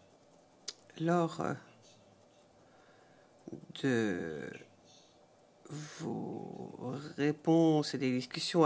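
A man speaks steadily into a microphone, with pauses.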